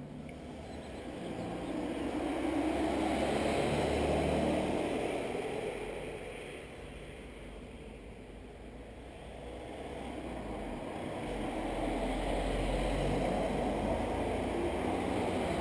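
A car drives past on a nearby road, swelling and fading.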